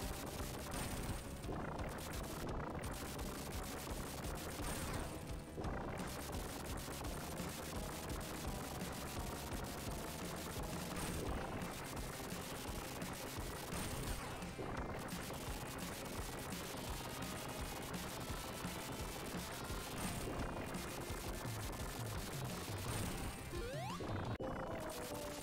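Video game sound effects blip and zap as a fight goes on.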